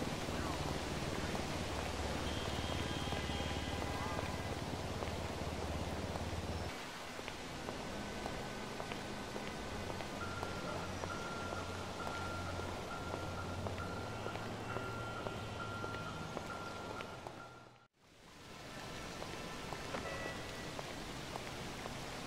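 Footsteps run up stone stairs and across a paved square.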